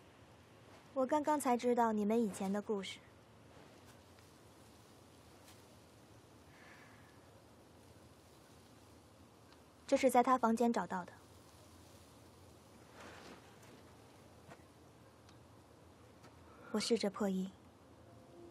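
A young woman speaks softly and sadly, close by.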